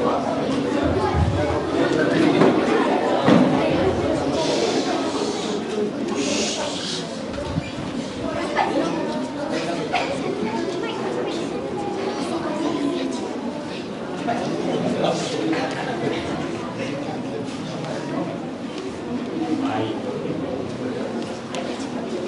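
Young women speak loudly and with expression in a large echoing hall.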